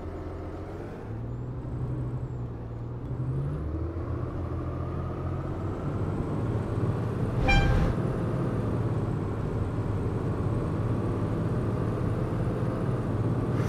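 An articulated diesel city bus pulls away and accelerates.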